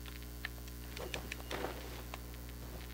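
Wings flap open with a soft whoosh.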